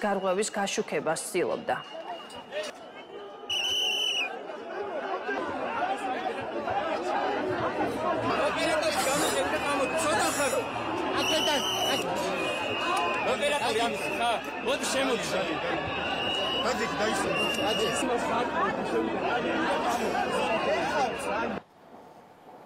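A crowd of people shouts and talks all at once.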